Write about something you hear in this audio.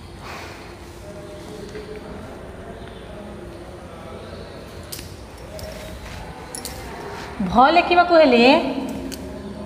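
A woman speaks aloud, mostly quietly, then loudly for a moment.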